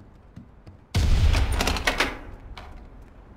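A wooden window swings open with a loud creak and bang.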